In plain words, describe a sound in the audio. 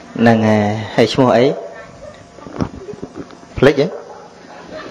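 A man speaks calmly and slowly, close to a microphone.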